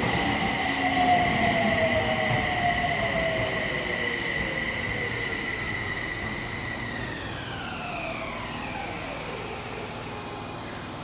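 An electric train's motor whines and drops in pitch as the train slows to a stop.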